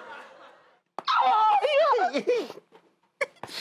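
A man laughs loudly and heartily.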